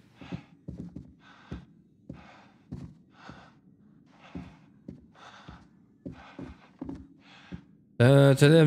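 Footsteps walk steadily across a wooden floor indoors.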